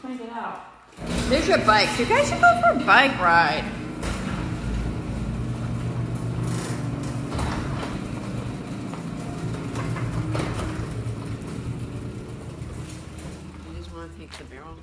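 A garage door rumbles steadily as it rolls open.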